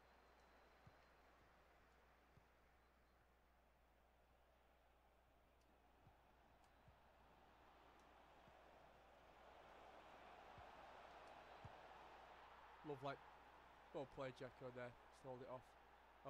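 A stadium crowd roars and swells to a cheer.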